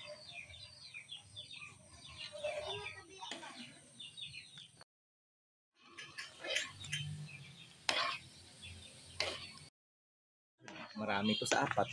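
A metal spatula stirs and scrapes a metal pan.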